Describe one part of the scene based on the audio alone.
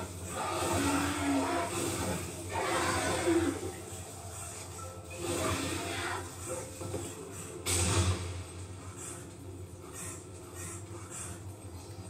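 Video game sound effects play from a television.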